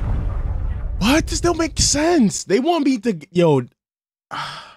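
A young man groans in dismay close to a microphone.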